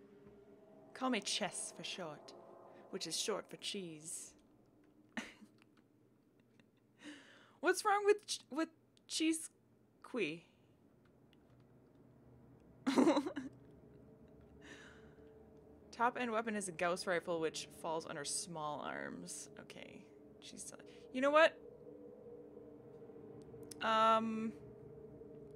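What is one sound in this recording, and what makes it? A young woman talks casually and with animation into a close microphone.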